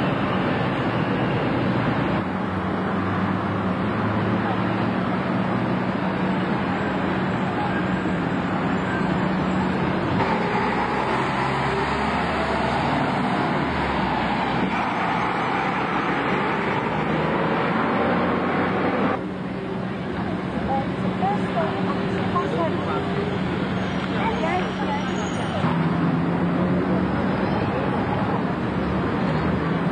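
A bus engine rumbles and drones as buses drive slowly past on a street.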